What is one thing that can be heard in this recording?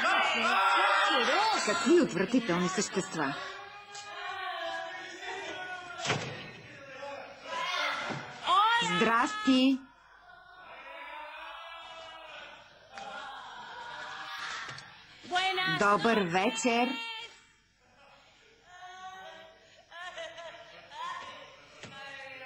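A woman speaks with emotion nearby.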